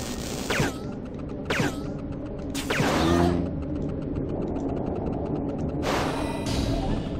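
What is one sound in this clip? Gunshots crack in short bursts.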